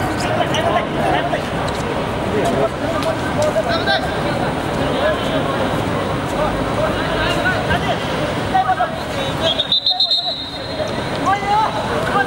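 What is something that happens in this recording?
Men shout and call out to each other across an open court.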